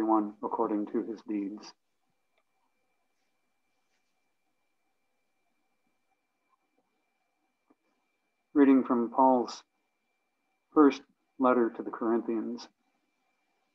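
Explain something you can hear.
An elderly man reads out calmly over an online call.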